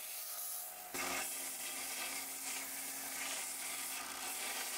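A belt grinder whines as metal grinds against it.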